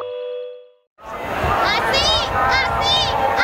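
A large crowd of protesters chants loudly outdoors.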